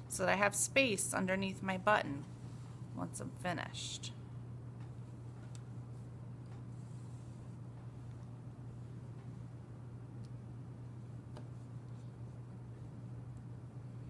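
Soft fabric rustles as hands handle it.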